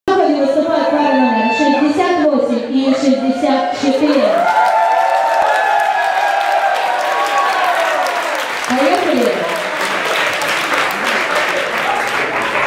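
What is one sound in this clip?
A crowd cheers and whoops loudly in a large hall.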